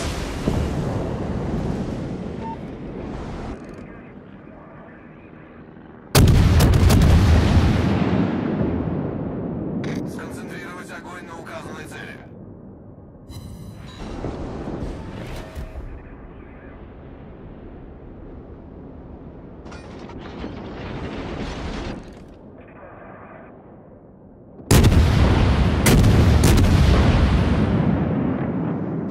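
Big guns fire with deep, rolling booms that slowly fade.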